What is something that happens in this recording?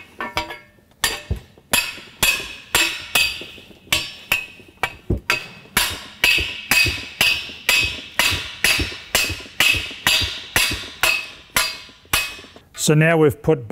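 A hammer taps metal rapidly and steadily.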